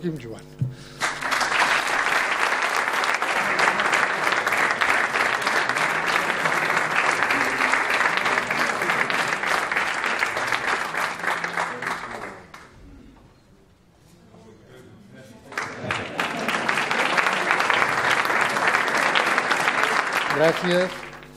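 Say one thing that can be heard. An audience claps and applauds loudly.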